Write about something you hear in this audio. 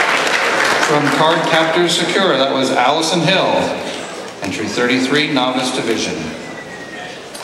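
A man speaks theatrically through a microphone in a large hall.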